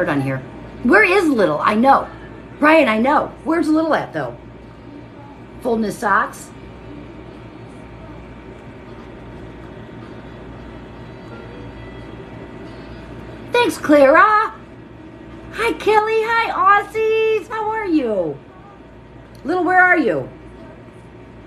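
A middle-aged woman talks with animation close to a microphone.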